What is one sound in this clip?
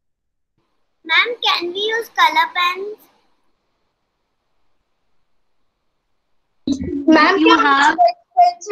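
A child speaks briefly through an online call.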